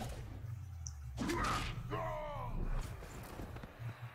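Armoured players crash into each other with a heavy thud.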